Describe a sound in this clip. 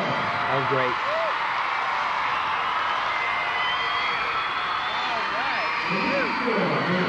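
A crowd cheers and applauds in a large arena.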